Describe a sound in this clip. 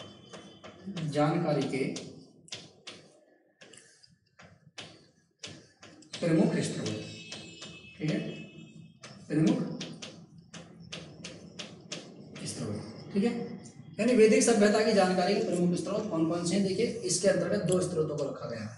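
A man speaks steadily, as if explaining, close to a microphone.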